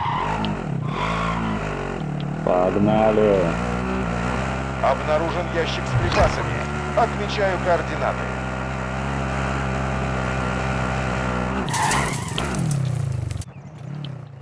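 A buggy engine hums and revs steadily.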